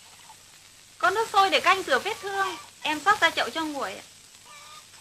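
A young woman speaks up clearly, close by.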